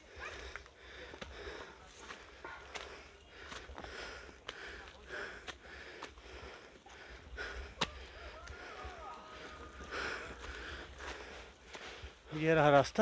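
Footsteps tread steadily along a forest trail.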